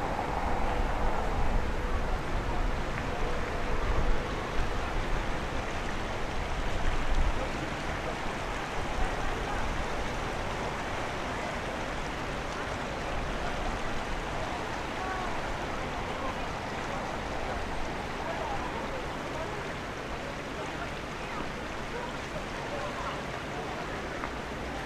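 Water flows steadily in a shallow stream outdoors.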